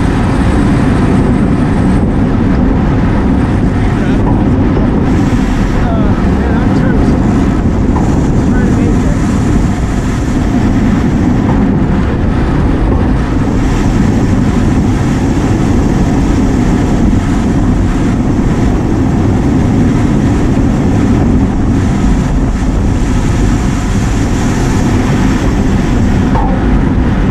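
Wind rumbles loudly and steadily across a moving microphone outdoors.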